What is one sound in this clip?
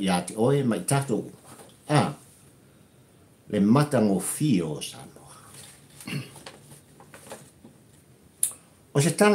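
An elderly man speaks animatedly close to a microphone.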